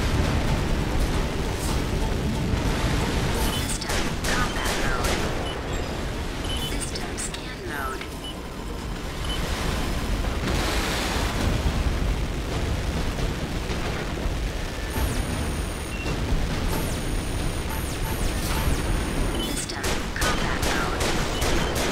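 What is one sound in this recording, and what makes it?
Electronic beeps chirp now and then.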